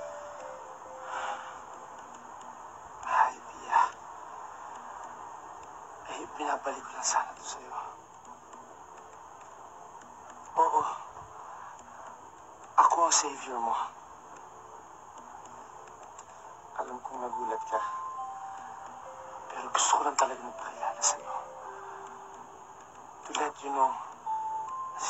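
A young man speaks calmly, close by, in short bursts.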